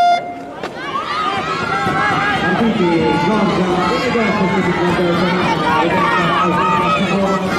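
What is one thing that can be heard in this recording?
A crowd of spectators cheers and shouts loudly.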